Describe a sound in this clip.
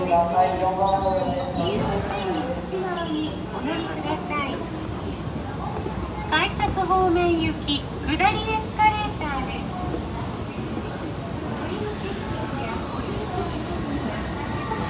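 An escalator hums and rattles steadily.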